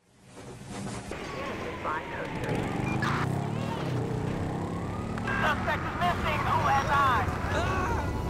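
A motorbike engine revs.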